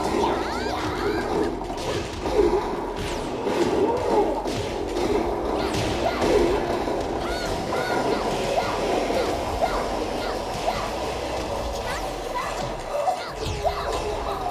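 Punches and kicks land with heavy impacts.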